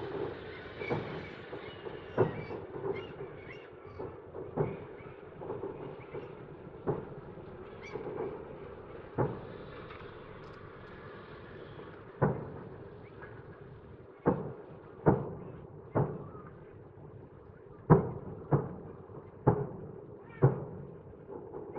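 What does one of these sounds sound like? Fireworks boom and thud in the distance, echoing across the night.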